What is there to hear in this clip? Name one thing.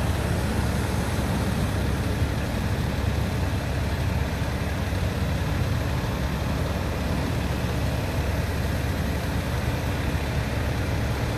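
Heavy fire engines rumble past one after another with deep diesel engines.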